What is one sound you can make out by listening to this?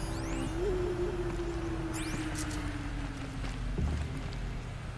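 An electronic hum slowly drops in pitch, then cuts off.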